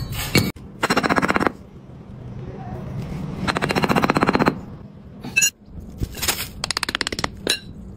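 A metal bar scrapes and packs damp sand.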